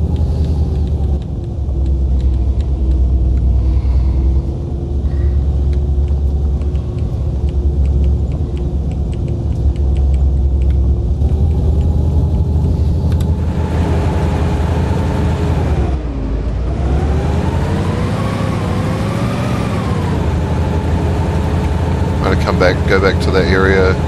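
A truck engine rumbles steadily, rising and falling in pitch as it drives.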